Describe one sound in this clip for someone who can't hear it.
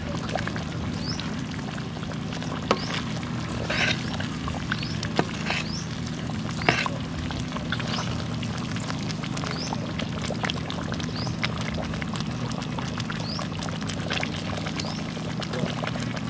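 A wood fire crackles under a wok.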